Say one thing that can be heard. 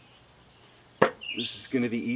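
A metal punch knocks once against a wooden board.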